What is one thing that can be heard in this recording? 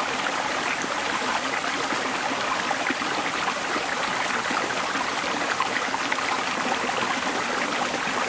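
A man splashes water with his hands in a stream.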